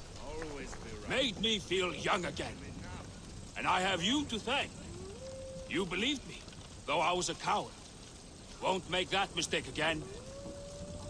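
A man speaks with animation, heard close.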